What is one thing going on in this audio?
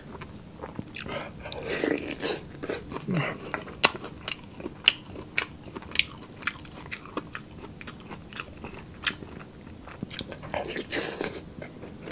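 A young man chews and smacks his lips loudly close to a microphone.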